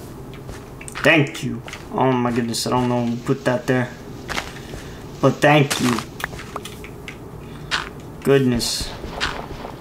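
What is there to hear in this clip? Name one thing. A young man speaks close to a microphone, in short bursts.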